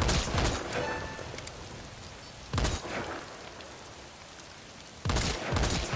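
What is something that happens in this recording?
A rifle fires loud, booming shots a few seconds apart.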